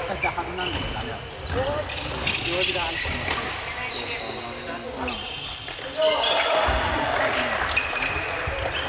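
Children call out and chatter in a large echoing hall.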